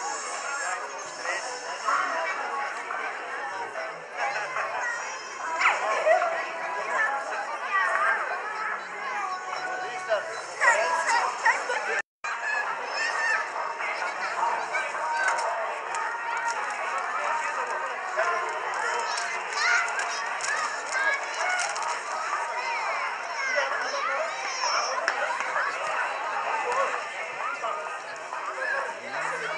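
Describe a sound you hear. Young children shout and call out.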